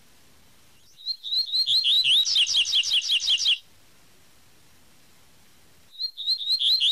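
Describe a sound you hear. A small bird sings a rapid, high twittering song in short bursts.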